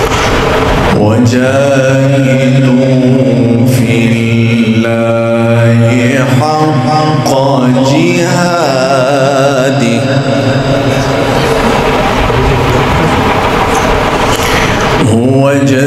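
A young man chants in a long, drawn-out melodic voice through a microphone and loudspeaker.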